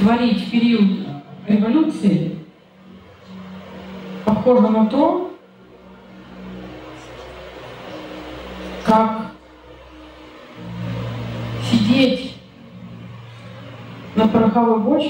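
A woman speaks into a microphone in bursts, with pauses between phrases.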